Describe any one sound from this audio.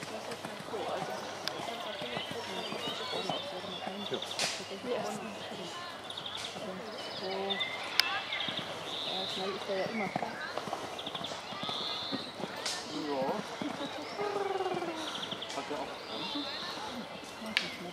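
A horse's hooves thud on sand as it canters.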